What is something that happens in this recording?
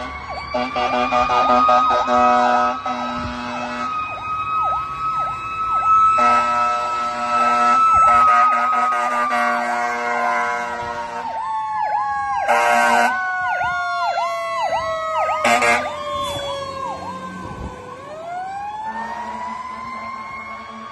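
Sirens wail loudly nearby, rising and falling in pitch.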